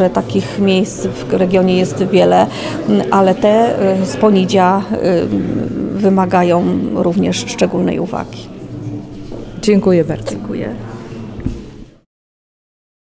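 A middle-aged woman speaks calmly into a microphone, heard up close.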